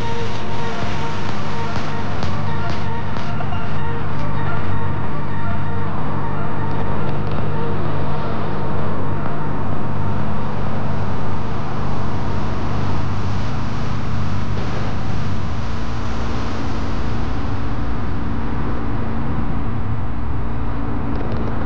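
Tyres rumble over the road surface.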